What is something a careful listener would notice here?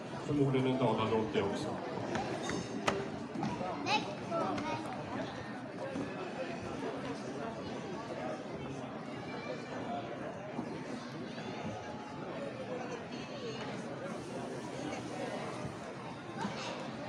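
Many adults chatter nearby.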